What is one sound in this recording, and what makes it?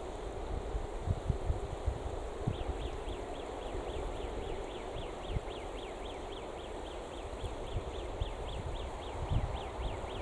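Wind blows across open ground and buffets the microphone.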